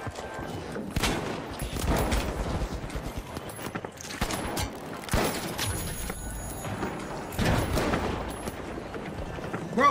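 A shotgun fires in loud, sharp blasts.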